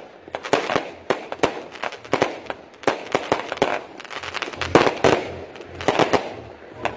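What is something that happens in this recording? Fireworks crackle and pop in rapid bursts outdoors.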